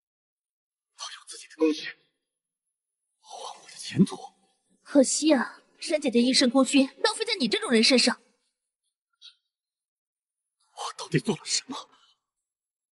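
A young man speaks in a shocked, strained voice.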